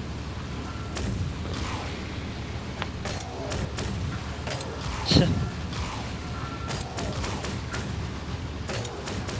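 Rocket boosters whoosh in short bursts.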